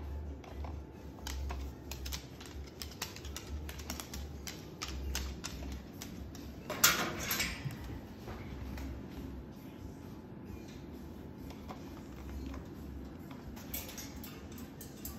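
A cockatoo's claws tap and click on a wooden floor.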